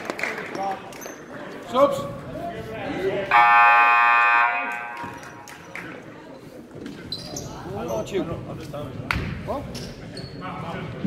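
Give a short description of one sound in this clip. Young men call out to each other across a large echoing gym.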